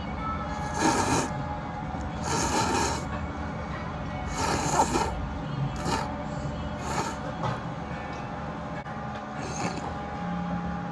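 Someone slurps noodles loudly in short bursts.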